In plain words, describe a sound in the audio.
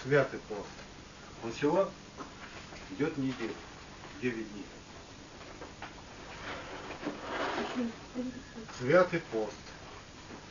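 A man speaks calmly in short phrases with pauses.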